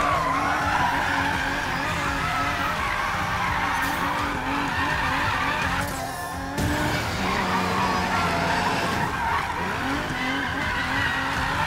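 Tyres screech on tarmac as a car drifts.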